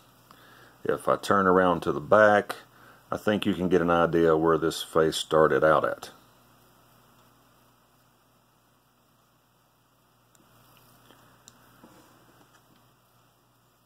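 Fingers turn a small plastic toy figure with faint clicks.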